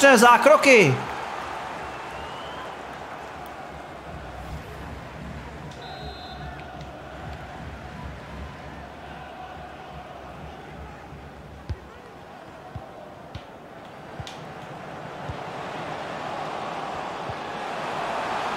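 A stadium crowd murmurs steadily in the background.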